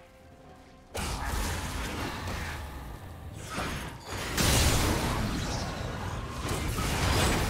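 Fiery blasts and magical bursts crackle in quick succession during a fight.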